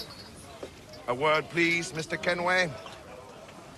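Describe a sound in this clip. A young man speaks calmly, asking for a word.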